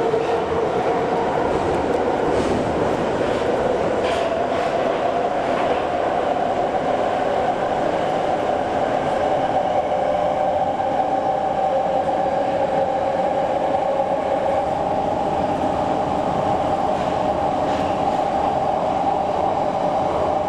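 A subway train rumbles and hums steadily while moving.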